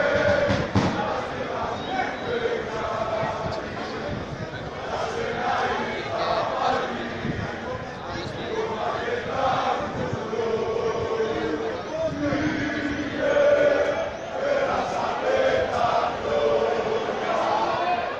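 A crowd of spectators chants and sings throughout outdoors.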